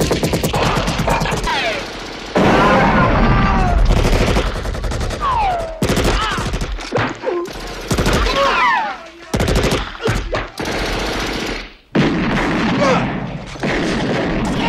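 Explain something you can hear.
Men scream as they are hit.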